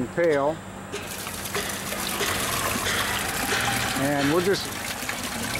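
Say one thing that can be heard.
Small pieces rattle and patter as they pour from a bucket into a machine.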